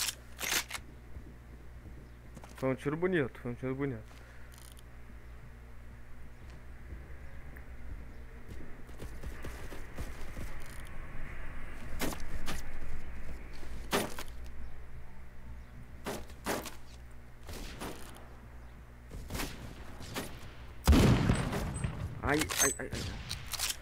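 A sniper rifle fires single loud shots.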